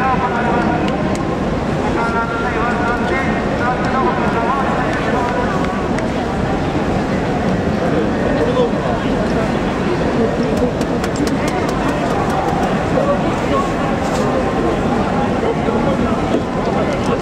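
A large stadium crowd cheers and chants loudly throughout.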